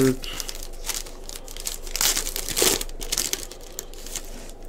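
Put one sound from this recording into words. A foil wrapper crinkles and rustles in hands.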